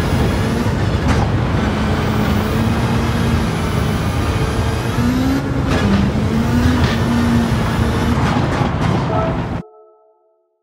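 Tyres crunch and rumble over gravel.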